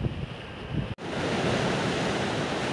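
Waves break and wash over rocks.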